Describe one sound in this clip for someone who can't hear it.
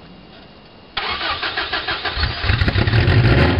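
A starter motor cranks a cold car engine.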